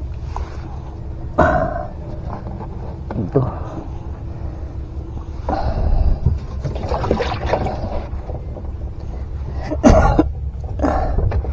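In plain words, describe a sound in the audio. Wet fish thump and slide against a foam cooler as hands handle them.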